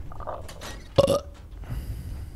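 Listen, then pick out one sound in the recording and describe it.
A heavy metal door swings open with a loud clank.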